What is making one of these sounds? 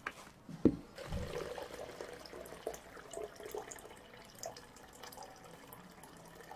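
Water pours into a plastic jug and splashes.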